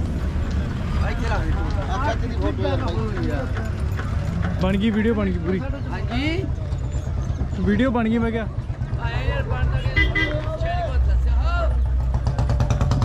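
Men talk nearby in calm voices.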